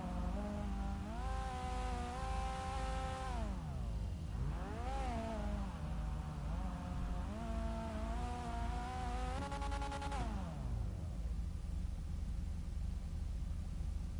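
Car engines idle with a low rumble.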